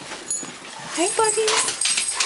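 A dog whines and yowls close by.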